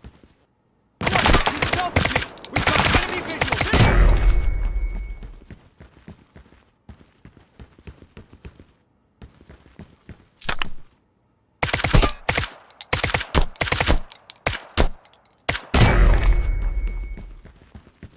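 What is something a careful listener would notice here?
A rifle fires loud shots that boom and echo away.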